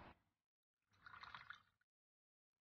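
Tea trickles as it is poured into a small cup.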